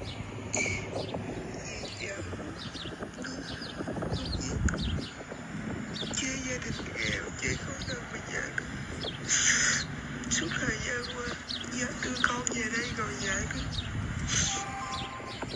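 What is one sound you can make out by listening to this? An older man speaks quietly close by.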